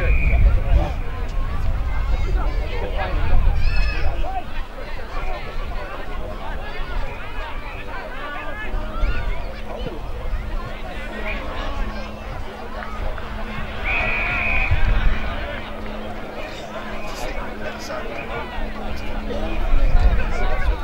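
Wind buffets loudly across an open field.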